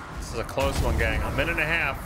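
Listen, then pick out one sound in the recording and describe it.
Fiery blasts boom in a video game.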